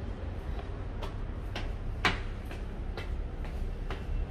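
Footsteps climb hard stairs at an even pace.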